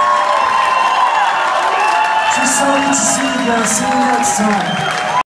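A man sings into a microphone over the band.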